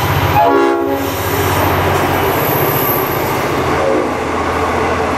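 Train wheels clatter over the rails as carriages rush past.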